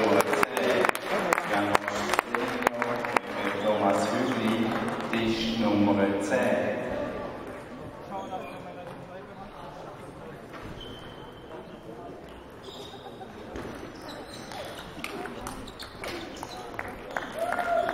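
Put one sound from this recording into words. A table tennis ball clicks back and forth off paddles and a table in a large echoing hall.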